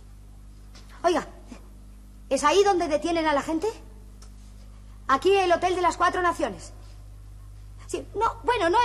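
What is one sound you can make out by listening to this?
A woman speaks anxiously into a telephone.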